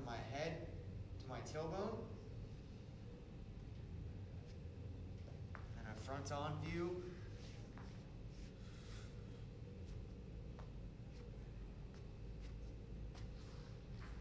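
Hands pat and shuffle on a rubber floor.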